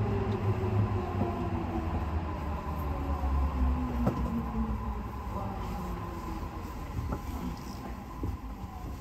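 A train's motors whine and fall in pitch as it slows down.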